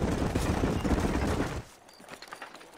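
A horse-drawn wagon rolls and rattles over rough ground.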